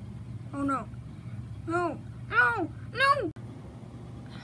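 A boy sings a few short, bending notes close by.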